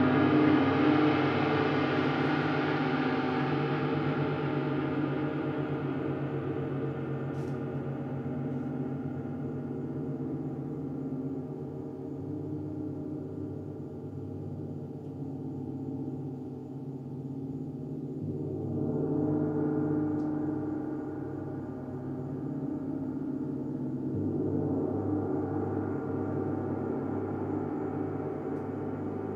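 Large gongs ring and hum in long, shimmering swells that slowly fade and rise again.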